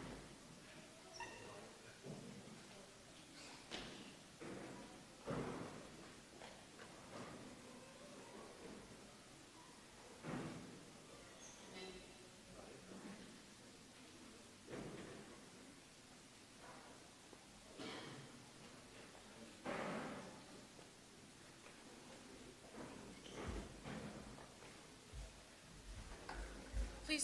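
Footsteps shuffle across a hard floor in a large echoing hall.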